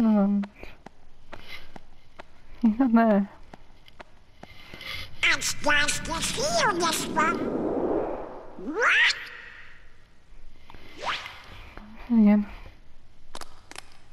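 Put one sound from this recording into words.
A man speaks in a squawky, excited cartoon duck voice.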